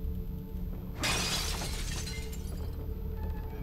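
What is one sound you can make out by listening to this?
Wooden planks smash and splinter.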